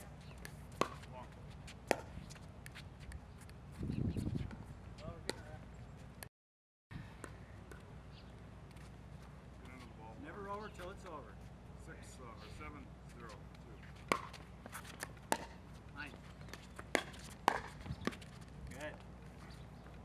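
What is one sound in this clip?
Paddles hit a plastic ball with sharp hollow pops.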